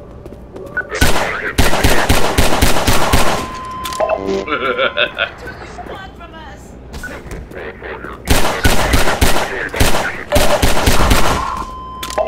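A pistol fires rapid shots that echo sharply.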